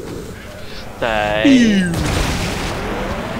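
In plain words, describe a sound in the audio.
A ghostly figure lets out a long, eerie wail.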